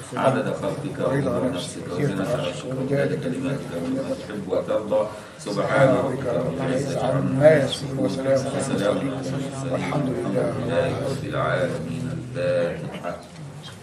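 An elderly man chants in a steady voice through a microphone in an echoing room.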